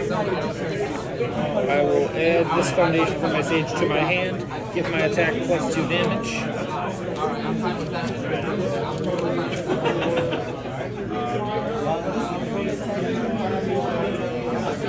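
Playing cards slide and tap softly on a mat.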